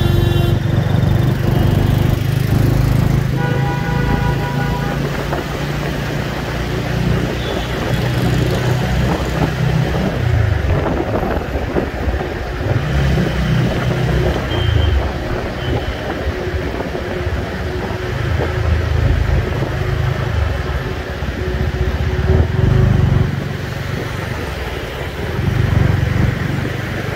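Traffic rolls by on a busy road.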